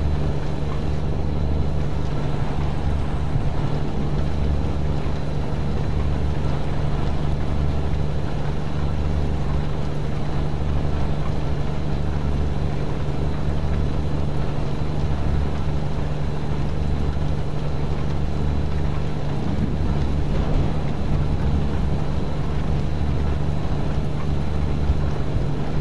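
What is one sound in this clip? Rain patters on a windshield.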